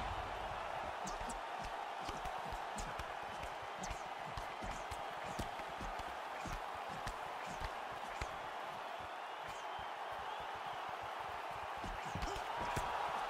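Punches thud against a fighter's body.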